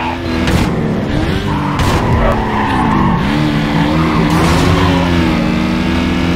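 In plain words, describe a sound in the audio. Tyres screech as a car skids through a turn.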